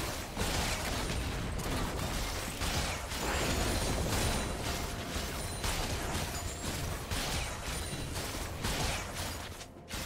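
Game spell effects and hits clash rapidly in a busy fight.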